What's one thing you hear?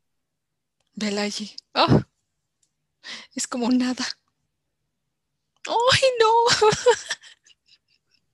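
A woman talks over an online call.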